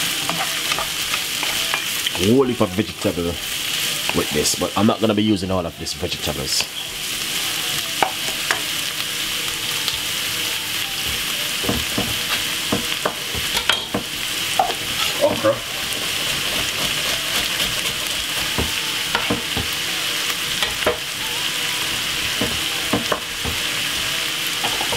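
Vegetables sizzle steadily in hot oil.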